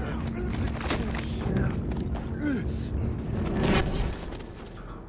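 Heavy punches land with dull thuds in a brawl.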